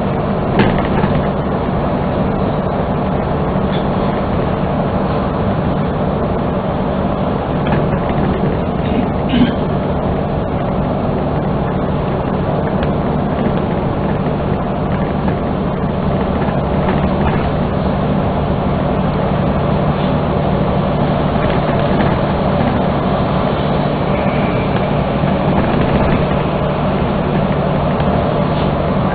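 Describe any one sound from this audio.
A large vehicle's engine hums steadily as it drives along a highway.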